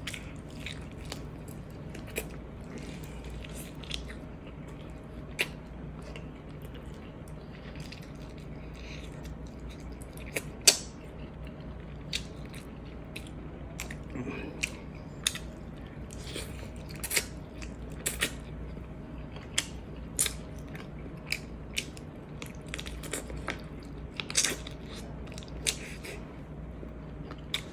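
A young woman chews food noisily, with wet smacking sounds close by.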